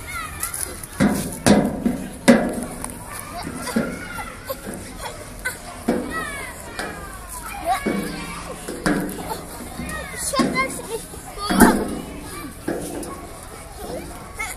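A young child's feet thump and squeak on a metal slide.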